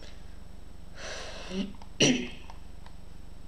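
A boy speaks briefly and quietly close to a microphone.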